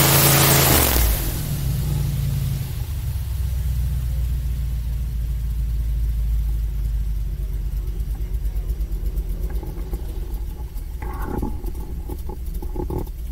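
A boat drifts with a low idle rumble.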